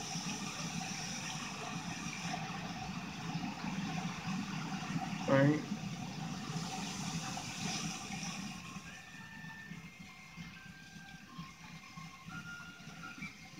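Water rushes and splashes steadily, heard through a television speaker.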